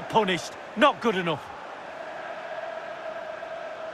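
A football is struck hard.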